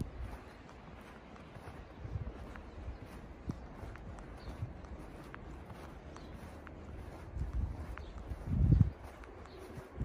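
Footsteps crunch slowly through deep snow.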